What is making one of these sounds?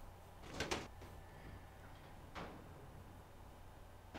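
Heavy metal doors grind open.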